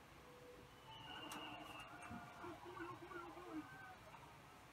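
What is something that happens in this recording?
A video game plays a bright sparkling chime through a television speaker.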